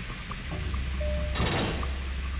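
An electronic keypad beeps.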